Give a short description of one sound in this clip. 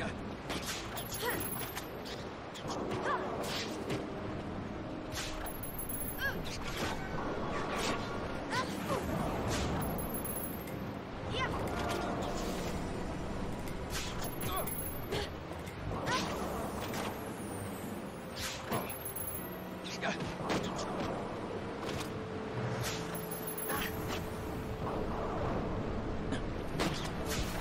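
Magic spells whoosh and chime.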